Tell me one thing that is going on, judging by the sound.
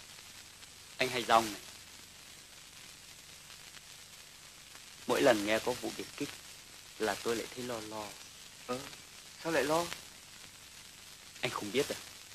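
A young man talks with animation.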